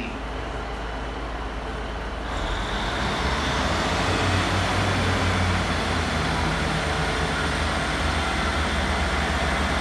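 A train rolls slowly along the rails.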